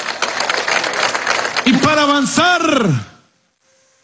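A large crowd cheers and applauds.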